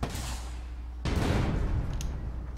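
An explosion booms and rumbles on.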